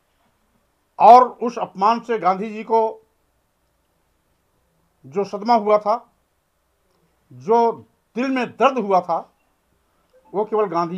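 An older man speaks calmly in bursts with pauses, close to a microphone.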